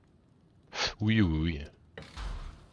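A man speaks briefly into a microphone.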